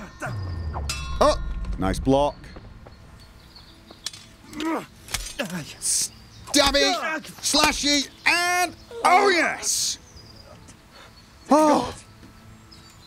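A man grunts and shouts as he fights.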